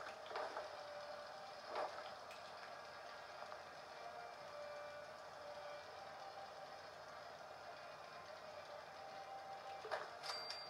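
Short menu clicks sound from a video game through a television speaker.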